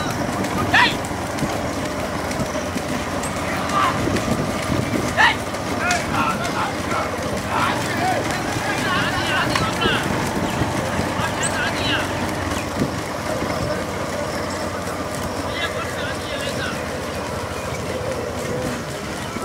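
Motorcycle engines rumble steadily close by.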